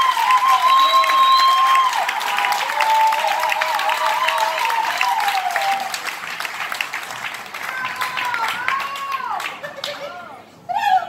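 A crowd cheers, claps and whistles loudly in a large echoing hall.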